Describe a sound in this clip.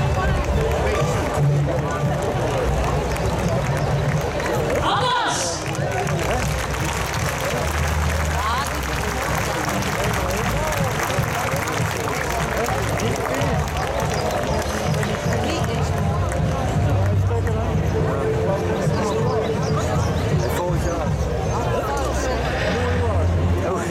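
A large crowd chatters outdoors close by.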